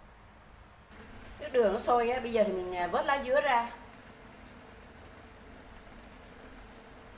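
A pot of water bubbles at a rolling boil.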